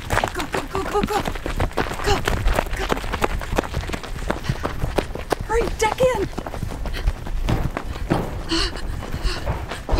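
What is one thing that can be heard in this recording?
Footsteps run across gravel and grass outdoors.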